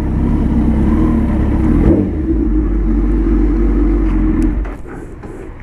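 A motorcycle engine idles and then shuts off.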